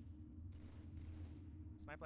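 A rifle fires a burst of shots.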